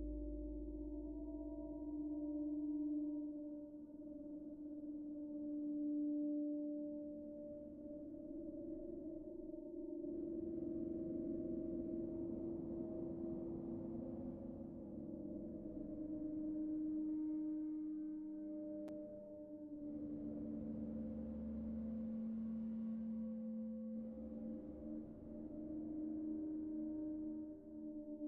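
A modular synthesizer plays sustained, droning tones that shift in pitch.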